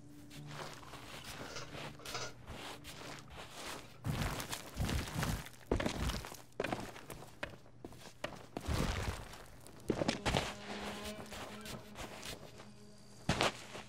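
Footsteps crunch on sand and rock.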